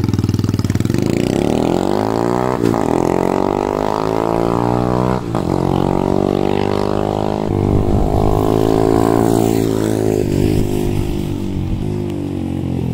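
A motorcycle accelerates away and fades into the distance.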